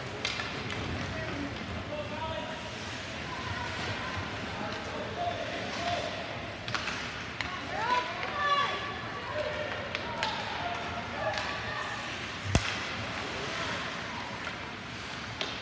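Skates scrape and swish across ice in a large echoing rink.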